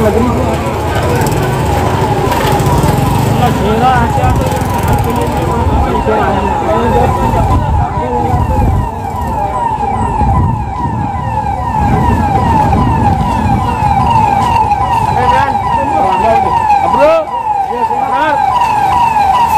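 A siren wails rapidly and steadily nearby.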